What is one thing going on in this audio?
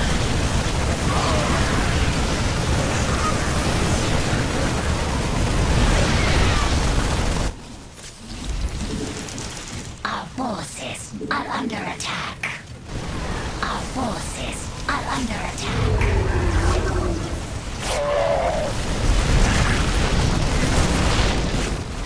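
Explosions boom in a battle.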